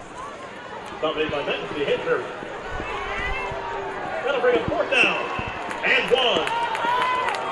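A crowd in the stands cheers and shouts outdoors.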